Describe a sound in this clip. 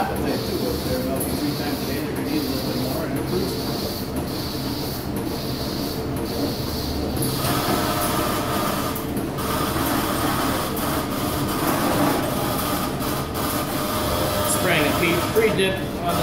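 A milking machine hums and pulses steadily.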